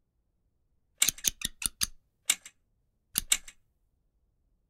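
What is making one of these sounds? A blade scrapes and tears at a thin wall covering.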